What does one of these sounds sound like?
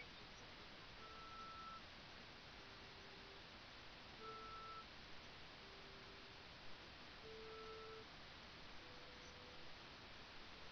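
Short electronic blips and beeps from a video game sound now and then.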